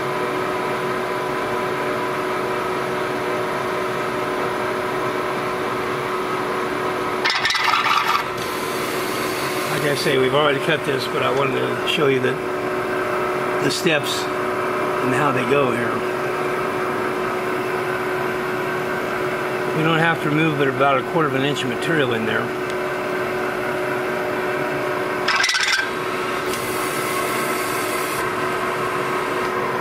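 A milling machine's spinning cutter drones steadily as it bores into metal.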